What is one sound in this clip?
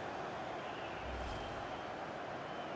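A whooshing transition sweeps past.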